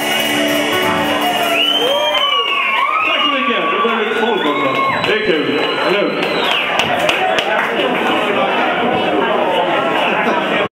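Electric guitars play loudly, with bending, wailing notes.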